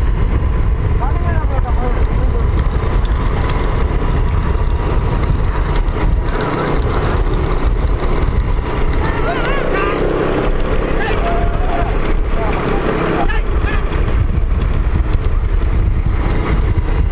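Cart wheels rumble loudly along a paved road.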